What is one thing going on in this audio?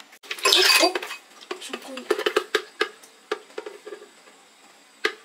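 Thick liquid pours and splashes into a glass.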